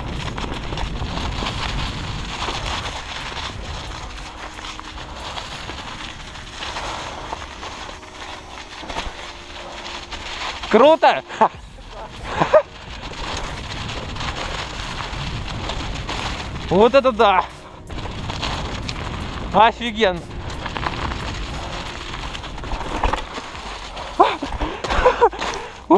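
Wind rushes loudly past a fast-moving rider.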